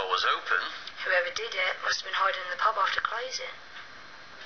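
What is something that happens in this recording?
A young woman speaks, heard through a television speaker.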